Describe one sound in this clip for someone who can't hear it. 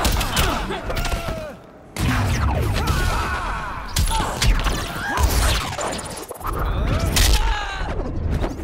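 Punches and kicks land with heavy thuds and whooshes.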